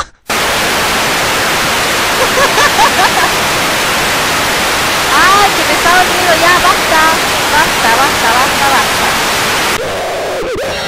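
Loud television static hisses steadily, then cuts off.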